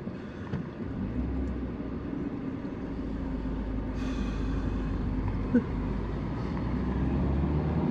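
A car drives along a road, heard from inside.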